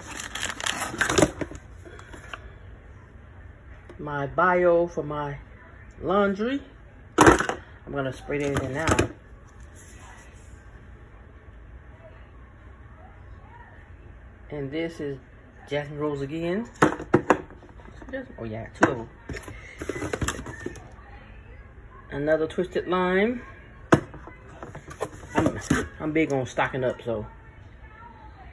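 Plastic bottles knock and clack against each other as a hand sorts them.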